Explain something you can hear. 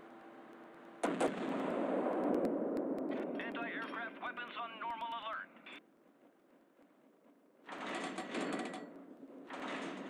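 Heavy naval guns fire with loud, rumbling booms.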